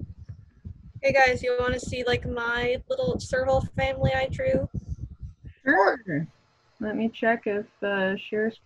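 A child speaks through an online call.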